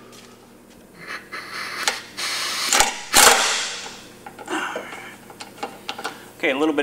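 A pneumatic tool whirs and rattles in short bursts.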